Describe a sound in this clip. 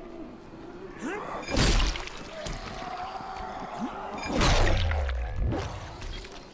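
A zombie growls and snarls nearby.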